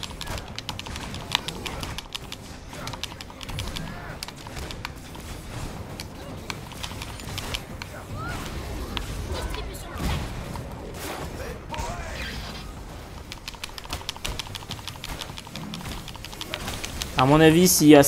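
Energy weapons fire in rapid bursts with sharp blasts.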